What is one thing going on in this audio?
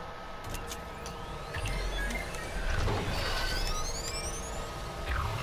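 Electronic systems power up with a rising whine.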